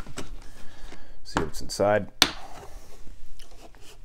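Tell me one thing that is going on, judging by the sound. A plastic case clicks and clatters as it opens.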